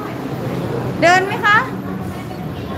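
A small child squeals in a high voice.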